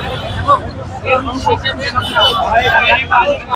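A man speaks loudly and with animation to a crowd, close to a microphone.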